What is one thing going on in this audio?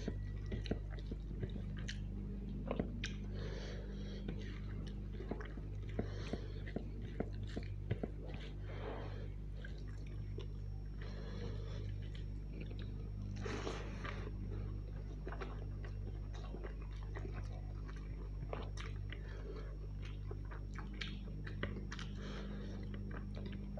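A man's fingers squish and mix rice and curry on a plate.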